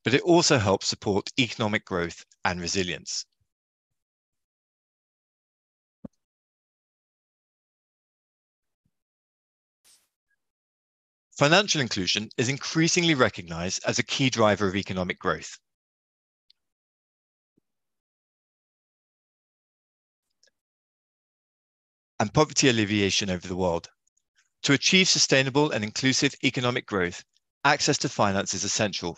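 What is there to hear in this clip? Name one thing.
A man speaks calmly through an online call, pausing now and then.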